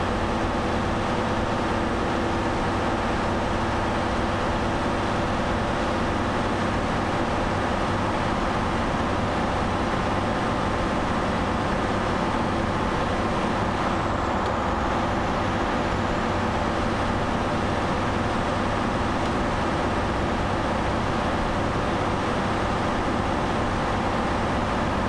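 A truck engine hums steadily while driving at speed.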